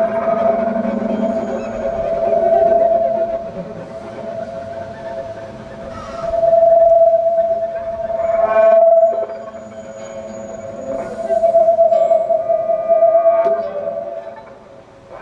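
A cello bows low notes.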